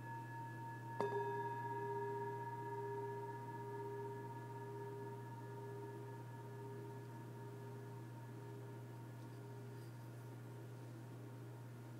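A singing bowl is struck and rings out with a long, slowly fading hum.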